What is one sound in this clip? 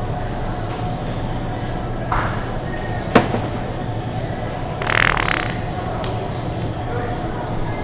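A shopping cart rattles as it rolls along a hard floor.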